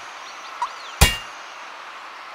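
A sharp electronic zap sounds once as a device switches on.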